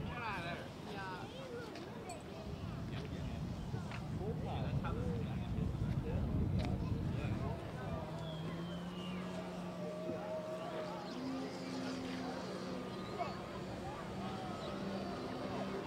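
A model airplane engine buzzes overhead.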